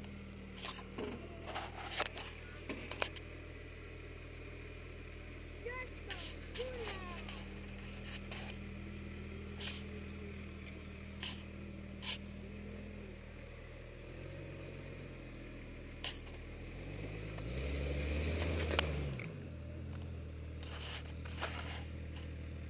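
Stones knock and clatter against the vehicle's underside.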